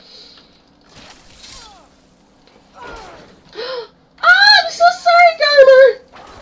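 Electric magic crackles and sizzles.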